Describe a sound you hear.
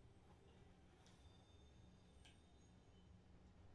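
A treasure chest hums with a shimmering chime through a television speaker.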